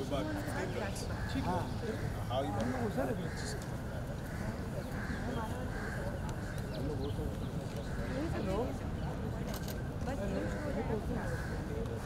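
Another man answers calmly up close.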